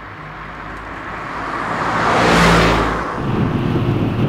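Traffic whooshes past outside.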